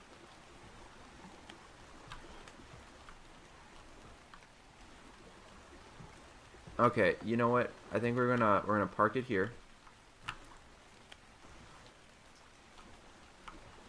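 Water laps gently against a wooden raft.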